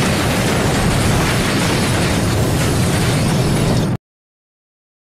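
A huge explosion roars with a deep, steady rumble.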